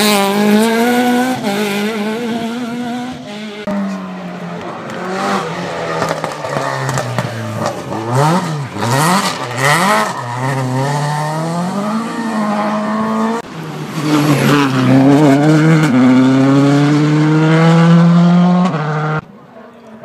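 A rally car engine roars and revs hard as it speeds past.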